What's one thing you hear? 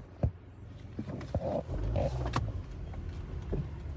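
A phone rubs and bumps against fabric close by.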